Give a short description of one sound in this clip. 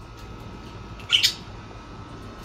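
A budgie flutters its wings briefly.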